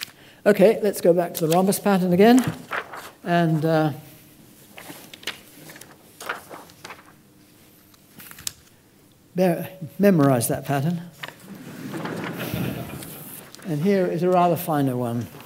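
Papers rustle and slide on a table.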